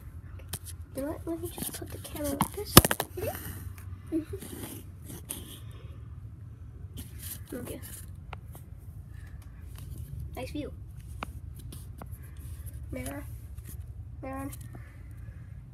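A young girl talks softly and hums close by.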